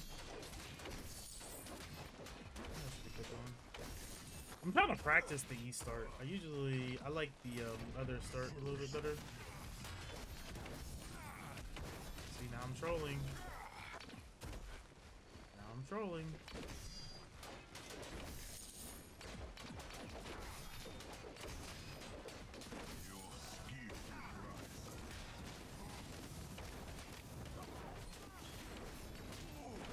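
Blades clash and strike repeatedly in a fight.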